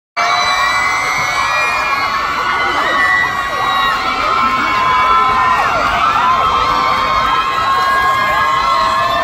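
A crowd of young women screams and cheers loudly close by.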